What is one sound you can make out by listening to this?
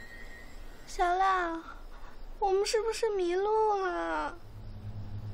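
A girl speaks anxiously, close by.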